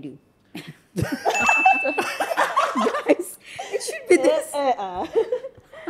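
Several young women laugh and cheer loudly.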